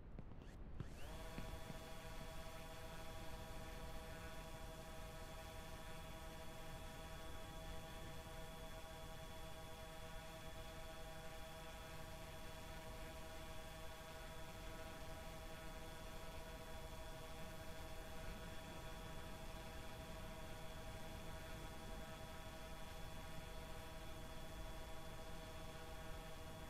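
A propeller machine hums steadily.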